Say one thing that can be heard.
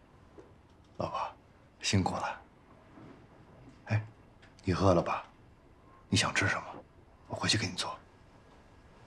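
A man speaks softly and gently, close by.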